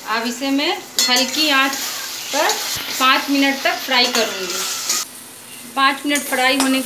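A metal spatula scrapes and stirs in a pan.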